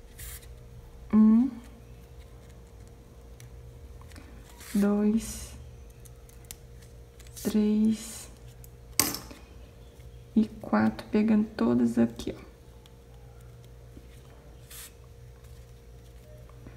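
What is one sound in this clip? Satin ribbon rustles softly.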